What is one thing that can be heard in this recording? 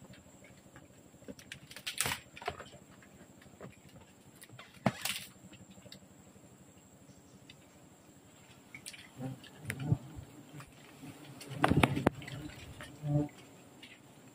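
Hands brush and rustle against a mass of bees.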